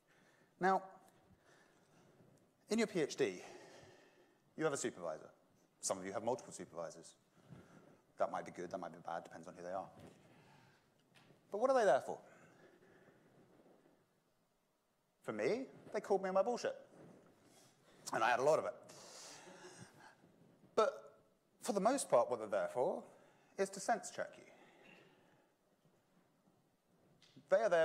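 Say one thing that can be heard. A man lectures through a microphone, speaking calmly with pauses.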